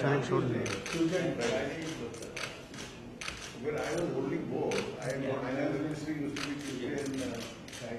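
An elderly man speaks calmly and cheerfully, close by.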